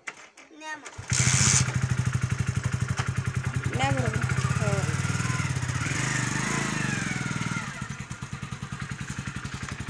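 A motorcycle engine starts and runs with a steady putter.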